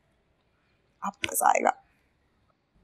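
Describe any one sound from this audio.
A young woman speaks with excitement nearby.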